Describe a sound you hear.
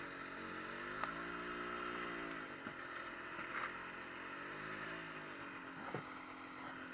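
Branches scrape and snap against the snowmobile's hood.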